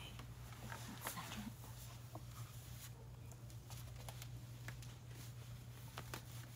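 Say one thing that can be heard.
Footsteps thump softly on the floor.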